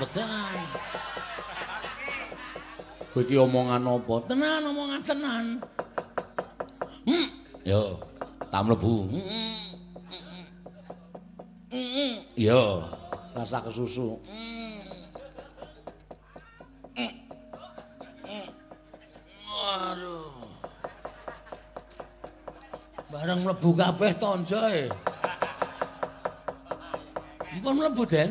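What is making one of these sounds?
A man speaks and sings in animated, changing voices.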